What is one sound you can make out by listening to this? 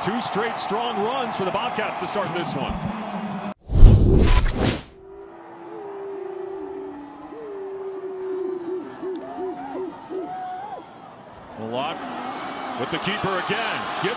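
A crowd cheers loudly in an open stadium.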